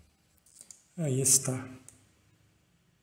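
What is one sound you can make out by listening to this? A man speaks briefly and close to a microphone.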